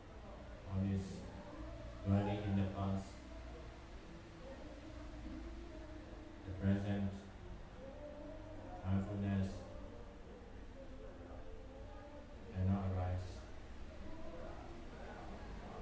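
A young man recites in a slow, melodic chant through a microphone, in a room with a slight echo.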